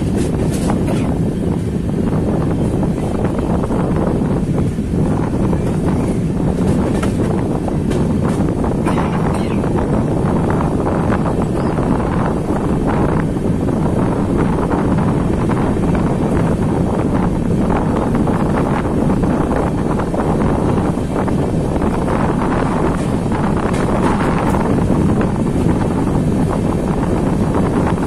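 Wind rushes loudly past an open train door.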